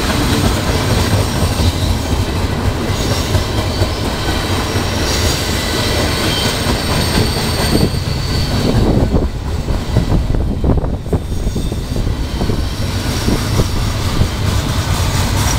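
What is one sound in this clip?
A freight train rumbles past close by with a loud, steady roar.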